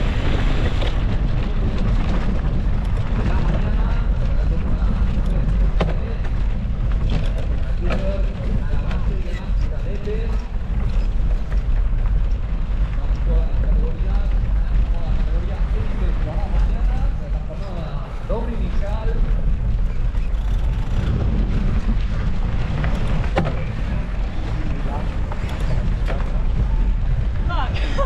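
A bicycle chain and frame clatter over bumps.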